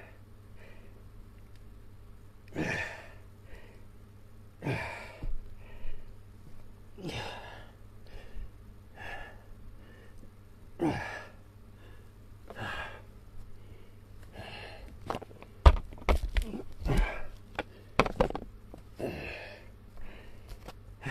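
An elderly man breathes out hard with each push-up, close by.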